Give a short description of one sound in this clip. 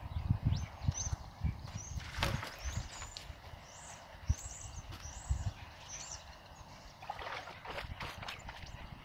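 Feet wade and splash through shallow water.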